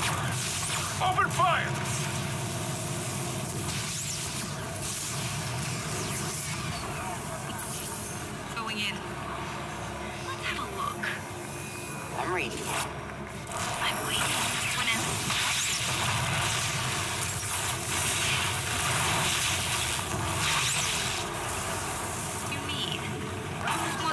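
Sci-fi energy weapons fire in bursts during a battle.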